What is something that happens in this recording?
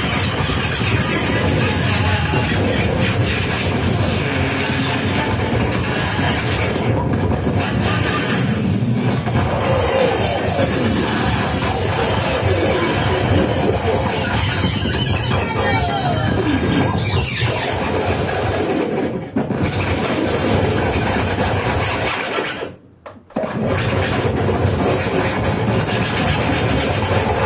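Loud electronic noise music plays from synthesizers, dense and harsh.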